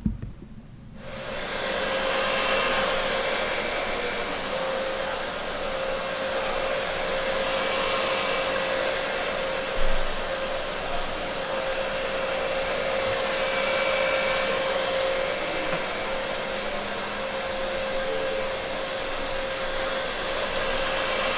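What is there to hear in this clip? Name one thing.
A floor scrubbing machine hums and whirs steadily.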